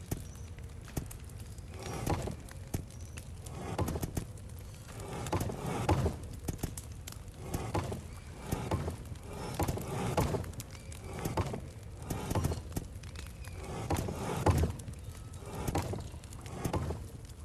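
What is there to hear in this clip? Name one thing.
Stone discs click and grind softly as they are pressed in turn.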